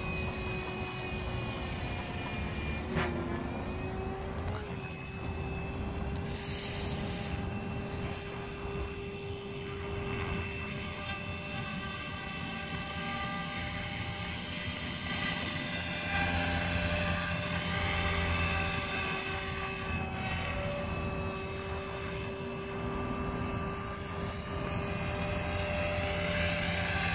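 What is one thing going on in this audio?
A small remote-controlled helicopter whines steadily overhead, its motor pitch wavering.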